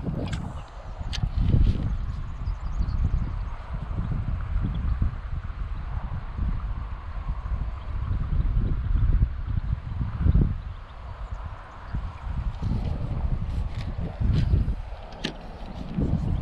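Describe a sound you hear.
A fishing reel whirs and clicks as its handle is wound.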